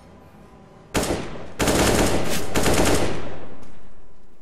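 An assault rifle fires.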